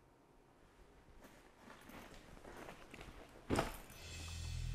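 A bag rustles as a man handles it.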